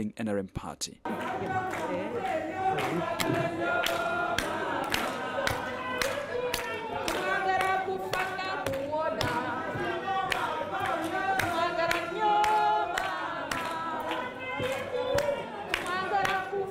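A crowd of women sings loudly together.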